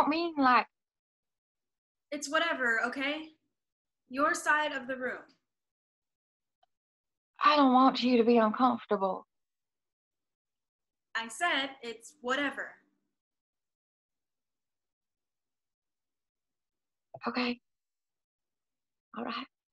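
A young woman speaks with animation over an online call, in short bursts with pauses.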